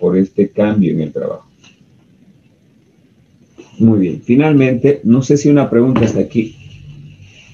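A man explains calmly into a nearby microphone.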